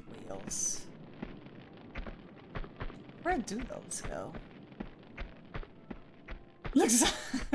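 Footsteps run quickly across a stone floor.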